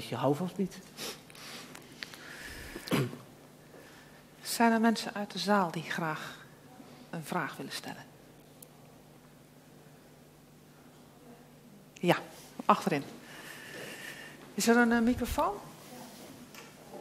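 A man speaks calmly into a microphone, heard through a loudspeaker in a large room.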